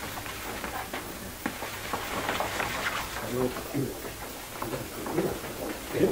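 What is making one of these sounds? Stiff paper rustles as it is unrolled.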